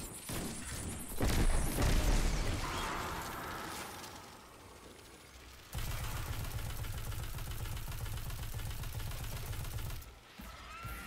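Guns fire in loud bursts.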